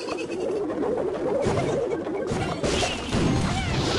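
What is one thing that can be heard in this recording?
A short game sound effect plays as a unit drops onto the field.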